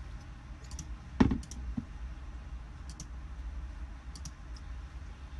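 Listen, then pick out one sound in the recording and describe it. Computer mouse clicks tap lightly.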